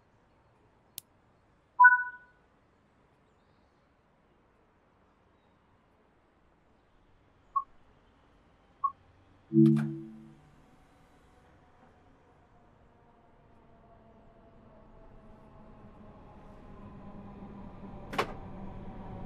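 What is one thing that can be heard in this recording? Switches click in a train cab.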